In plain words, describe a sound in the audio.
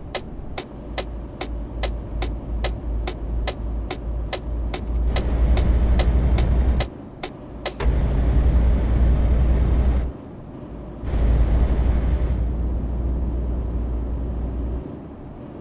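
A truck engine rumbles low and steady while driving.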